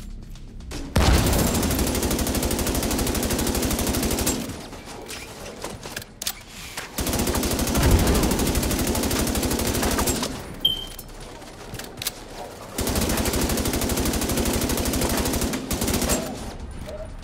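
A rifle fires in long rapid bursts.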